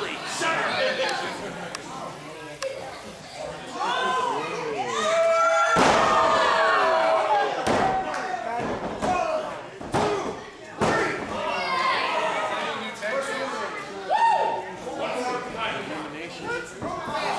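A crowd of spectators shouts and cheers in an echoing hall.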